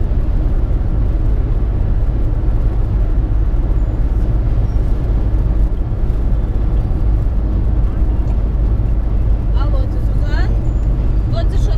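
A car drives along a highway with a steady low road rumble from inside.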